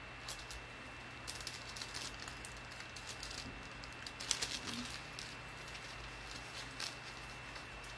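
A thin metal chain clinks softly.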